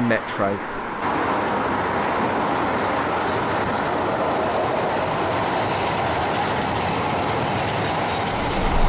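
A train rumbles steadily across a bridge in the distance.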